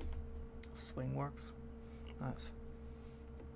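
A young man speaks briefly and quietly into a close microphone.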